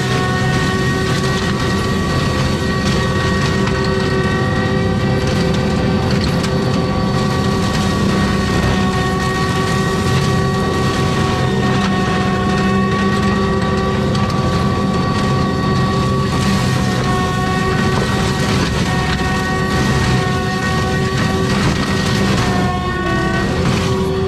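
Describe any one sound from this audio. A heavy machine engine roars steadily with a high whine.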